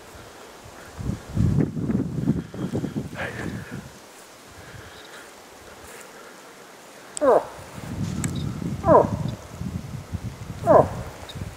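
Dry brush rustles as a man moves through it.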